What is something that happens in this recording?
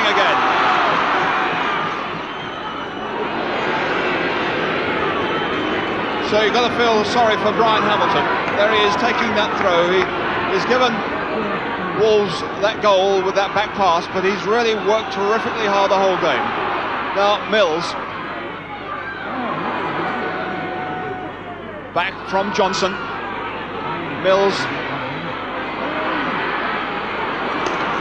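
A large crowd murmurs and roars in an open stadium.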